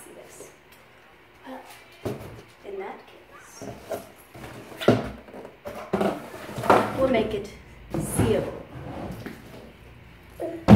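A bag rustles and thumps as it is handled.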